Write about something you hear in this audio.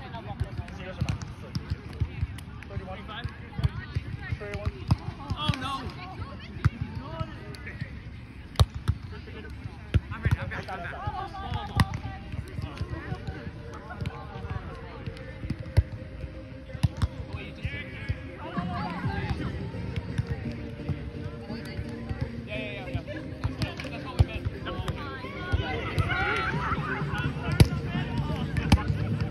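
A volleyball thumps off players' forearms and hands outdoors.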